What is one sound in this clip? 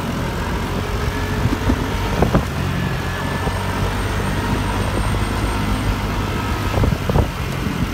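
A diesel van engine drones close by.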